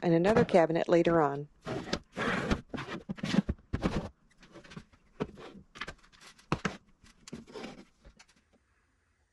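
Bottles and containers clatter and knock against a wooden shelf.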